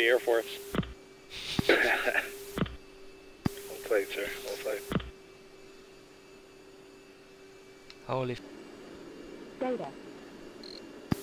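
A jet engine drones steadily.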